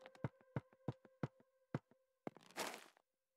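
Footsteps thud on a hard stone floor.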